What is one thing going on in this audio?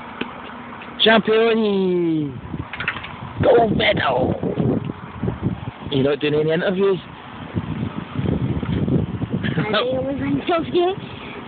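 A young girl shouts and laughs close by, outdoors.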